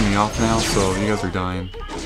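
A cartoon dragon breathes a burst of crackling fire.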